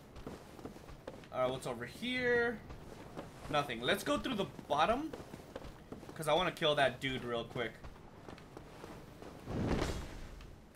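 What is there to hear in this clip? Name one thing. Armoured footsteps clank on wooden and stone floors.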